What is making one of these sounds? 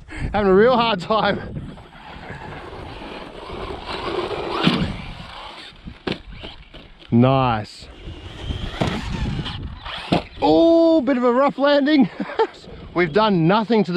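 A small electric motor whines, revving up and down in sharp bursts.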